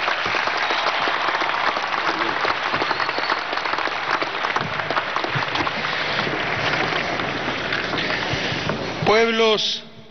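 A large crowd cheers and applauds outdoors.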